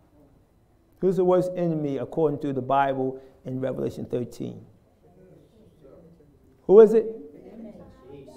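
An elderly man speaks with animation, heard slightly distant in a room.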